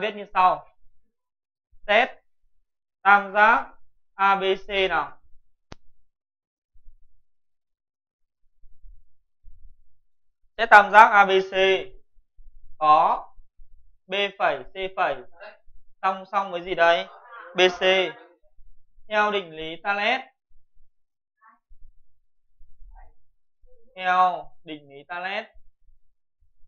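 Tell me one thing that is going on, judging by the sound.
A young man explains calmly, close by, pausing between phrases.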